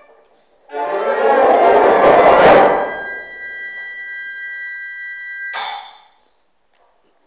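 A concert band plays a loud chord that swells, holds and then stops, ringing in a large hall.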